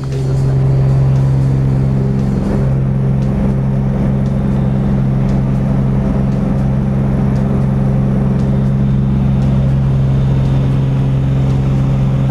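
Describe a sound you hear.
A small plane's engine drones loudly and steadily.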